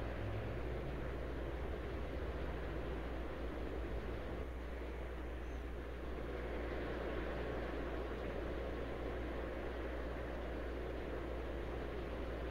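A jet airliner's engines roar steadily.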